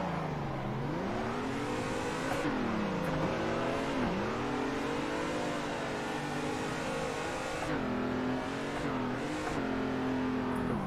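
A racing car engine roars, revving up and down as gears shift.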